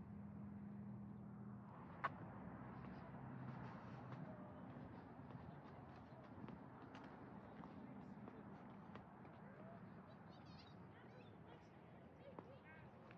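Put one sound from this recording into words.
Footsteps crunch slowly along a paved path outdoors.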